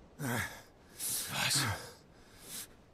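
A man exclaims in surprise.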